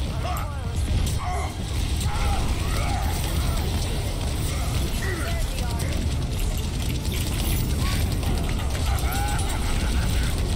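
Gunfire and blasts crackle from a video game.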